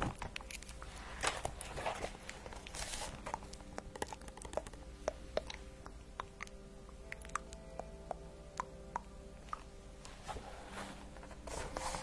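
A young woman whispers softly into a close microphone.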